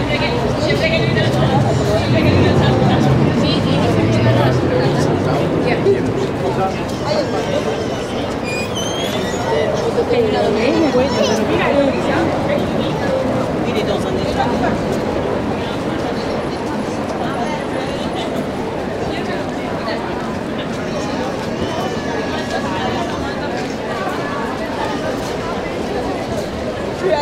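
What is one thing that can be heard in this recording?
A crowd of passers-by chatters outdoors.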